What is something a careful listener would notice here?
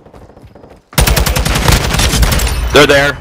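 A rifle fires in a rapid, loud burst.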